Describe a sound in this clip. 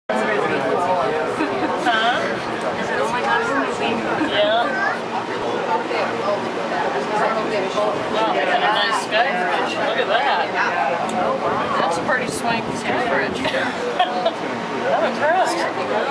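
A crowd of men and women chatter nearby, many voices overlapping.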